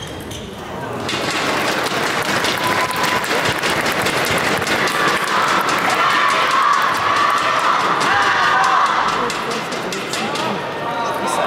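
A large crowd cheers and applauds loudly in a big echoing hall.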